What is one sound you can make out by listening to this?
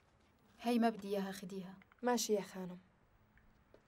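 A young woman speaks briefly and with feeling, close by.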